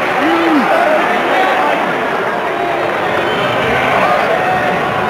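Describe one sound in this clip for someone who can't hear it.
A large stadium crowd murmurs and chatters all around.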